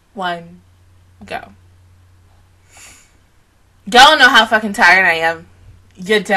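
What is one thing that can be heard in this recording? A young woman speaks with animation close into a microphone.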